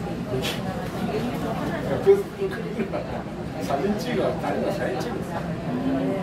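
A train rumbles as it pulls away from a platform.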